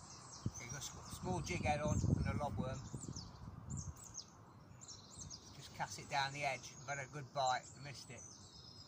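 A middle-aged man talks calmly close by, outdoors.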